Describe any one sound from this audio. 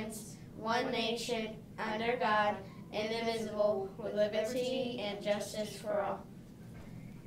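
A young girl recites in unison with a boy, close by.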